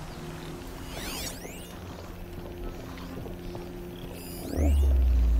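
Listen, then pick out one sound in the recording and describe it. Leafy bushes rustle as someone creeps through them.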